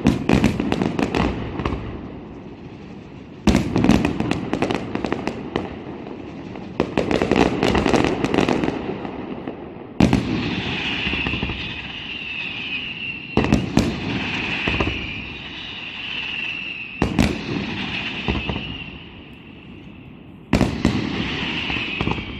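Fireworks burst with loud booms in the distance, echoing over open ground.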